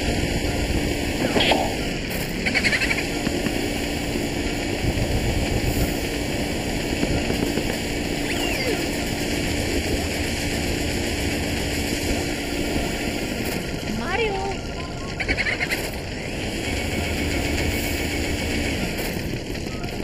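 A vacuum cleaner hums steadily.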